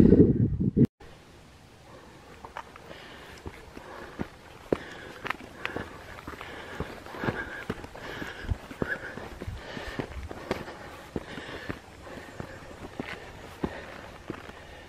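Footsteps scuff and tap on bare rock.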